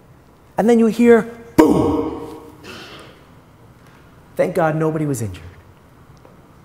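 A middle-aged man speaks with animation through a microphone in a room with some echo.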